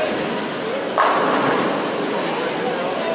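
Bowling pins crash loudly as a ball strikes them.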